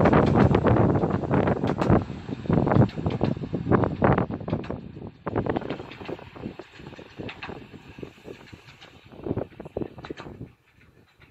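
A small train rolls away along the track, its wheels clattering and slowly fading.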